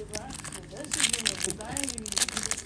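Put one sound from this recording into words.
A foil pack crinkles and tears open.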